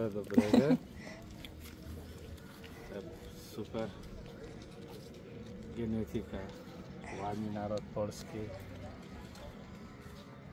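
Paper money rustles in a man's hands.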